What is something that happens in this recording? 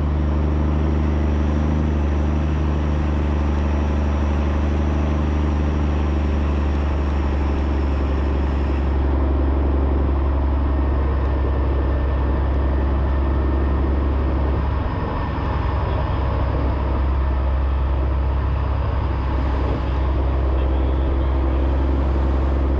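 An engine rumbles loudly and steadily up close.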